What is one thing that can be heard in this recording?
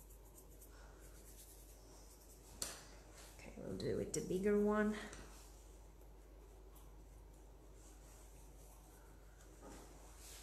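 A soft brush dabs and swishes lightly on paper.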